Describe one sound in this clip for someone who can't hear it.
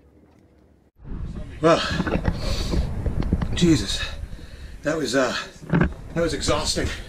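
A middle-aged man talks close to the microphone.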